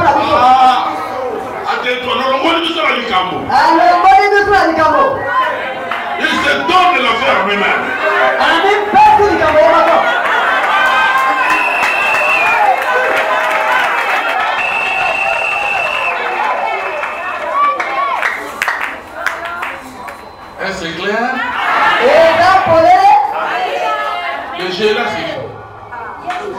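A man preaches with animation into a microphone over loudspeakers.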